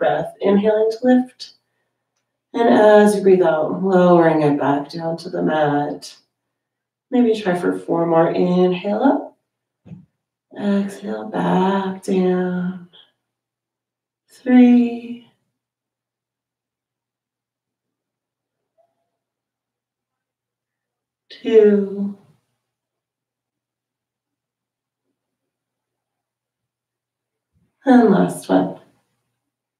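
A woman speaks calmly and slowly through a close microphone, with long pauses.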